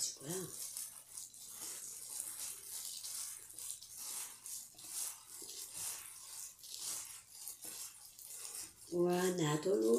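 Gloved hands squish and rustle through a mixture of food in a bowl, close by.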